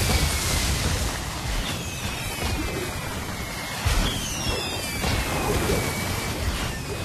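Spell effects crackle and boom in a game battle.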